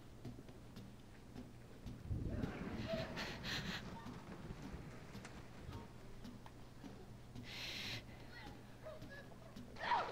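Footsteps thud on wooden stairs and floorboards.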